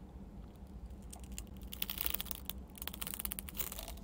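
A young woman gulps water from a plastic bottle.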